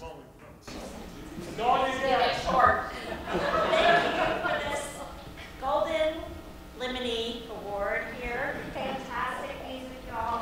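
A woman speaks with animation into a microphone, heard through loudspeakers.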